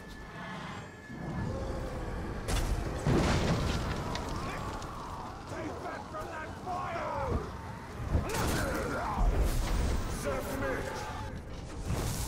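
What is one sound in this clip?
Swords clash and strike in a fierce fight.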